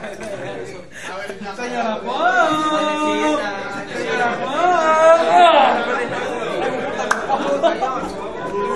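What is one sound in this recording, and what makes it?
Young men and women chatter and laugh nearby.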